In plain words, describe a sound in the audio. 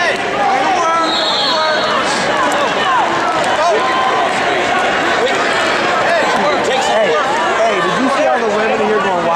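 A crowd of many voices chatters and calls out throughout a large echoing hall.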